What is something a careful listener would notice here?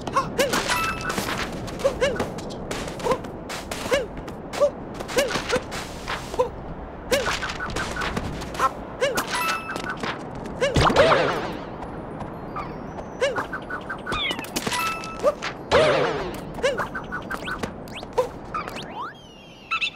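A cartoon character grunts and yelps with each jump.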